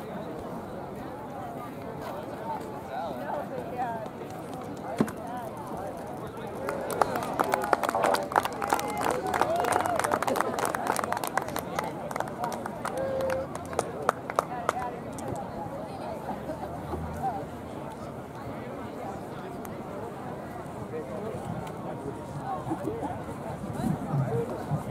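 Spectators chatter outdoors in the distance.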